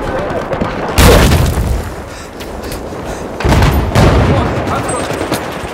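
Loud blasts boom close by, echoing briefly.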